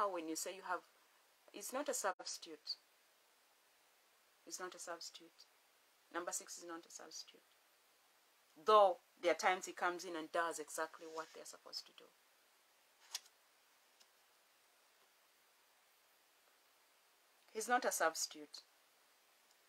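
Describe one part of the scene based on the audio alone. A woman speaks calmly and closely into a microphone, in short phrases with pauses.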